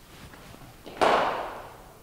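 A cricket bat strikes a ball with a sharp crack that rings briefly.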